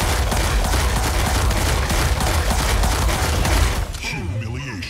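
Rapid laser gunfire crackles and booms loudly.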